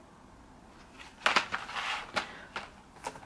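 A plastic package of markers rustles and clacks as it is set down.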